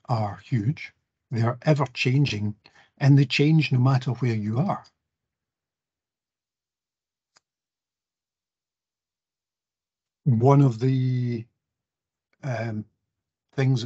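A man speaks calmly over an online call, pausing between phrases.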